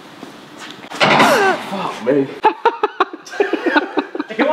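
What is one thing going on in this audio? A man close by talks and laughs with animation.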